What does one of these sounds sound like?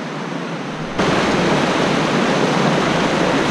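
A fast stream rushes and splashes over rocks close by.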